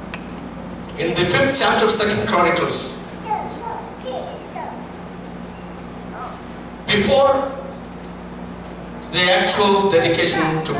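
A man speaks into a microphone in bursts, heard through a loudspeaker in a room with some echo.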